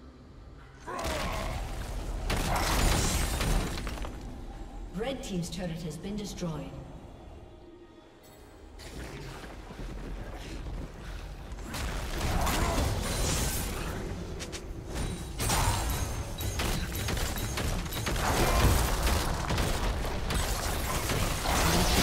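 Spells and attacks crash and whoosh in a game battle.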